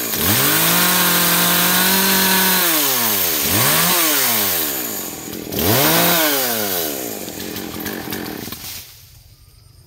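A chainsaw engine revs up and down loudly nearby.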